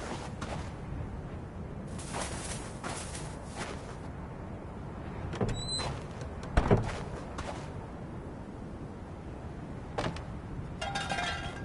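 Footsteps thud slowly on a creaking wooden floor.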